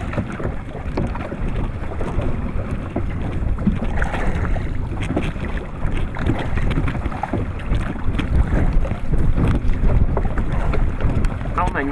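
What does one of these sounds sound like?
A fishing net rustles as a man pulls it in.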